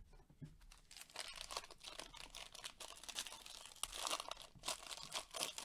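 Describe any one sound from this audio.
A foil wrapper crinkles and tears.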